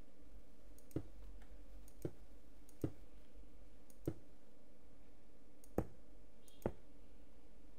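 Stone blocks are set down one after another with short, dull knocks.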